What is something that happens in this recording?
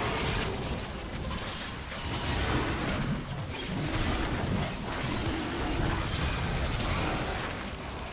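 Game spell effects crackle and whoosh in a fast battle.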